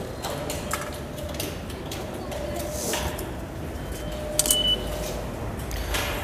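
Footsteps tap on a hard floor in an echoing hall.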